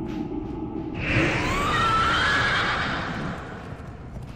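A magical spell whooshes and shimmers.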